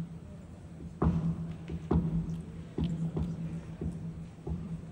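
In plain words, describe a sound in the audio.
An acoustic guitar is plucked through loudspeakers.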